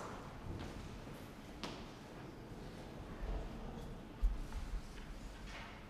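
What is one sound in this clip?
A man walks across a floor with soft footsteps.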